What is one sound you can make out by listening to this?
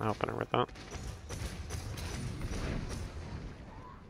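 A laser gun fires in quick bursts.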